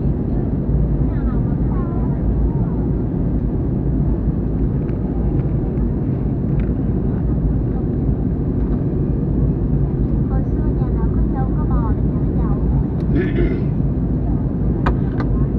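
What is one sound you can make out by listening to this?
A jet engine roars steadily in a plane's cabin.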